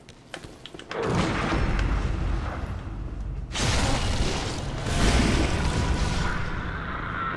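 A blade slashes and strikes with a wet splatter.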